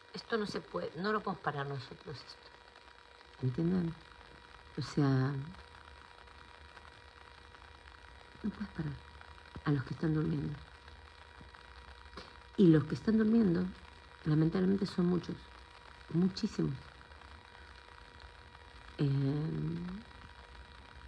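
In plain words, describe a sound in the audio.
A middle-aged woman talks calmly and close up, in short bursts with pauses.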